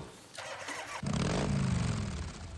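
A motorcycle engine starts and rumbles steadily.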